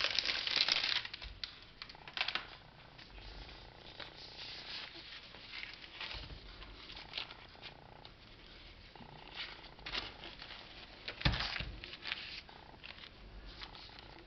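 Baking paper rustles and crinkles as it is rolled up.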